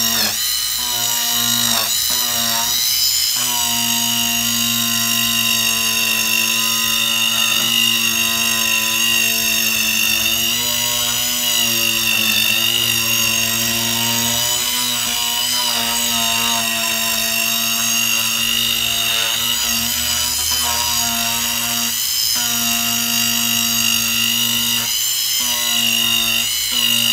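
A small rotary tool whirs steadily at high speed.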